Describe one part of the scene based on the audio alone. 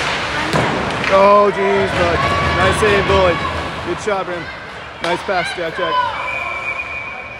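Spectators shout and cheer loudly.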